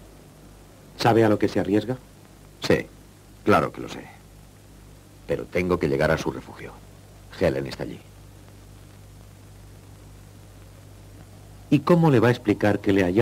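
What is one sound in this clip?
A man speaks in a low, tense voice close by.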